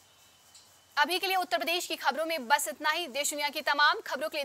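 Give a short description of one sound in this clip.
A young woman speaks calmly and clearly into a microphone, like a news reader.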